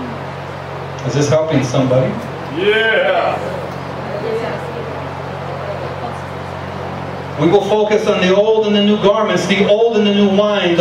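A man speaks calmly into a microphone, heard through loudspeakers in an echoing room.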